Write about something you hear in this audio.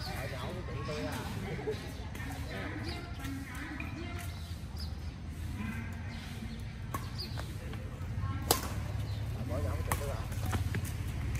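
Young people talk and call out to each other outdoors.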